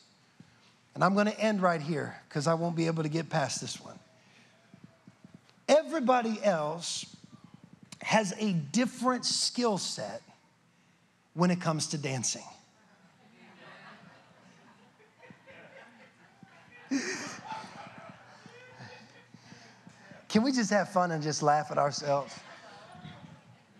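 A young man speaks with animation into a microphone in a room with some echo.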